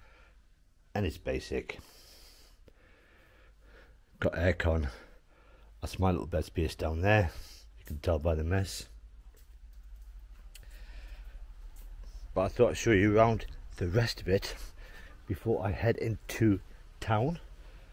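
A man speaks close by, calmly, in short bursts.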